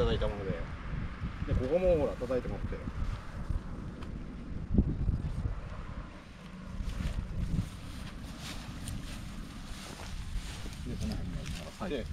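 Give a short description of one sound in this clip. Wind rumbles across the microphone.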